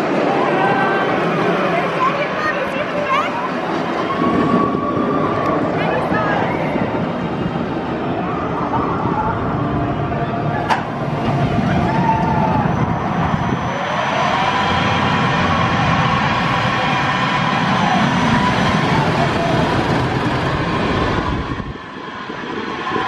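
A roller coaster train roars and rattles along its steel track.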